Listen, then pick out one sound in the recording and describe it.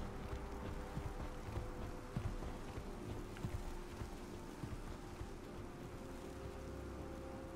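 Magic energy hums and crackles steadily.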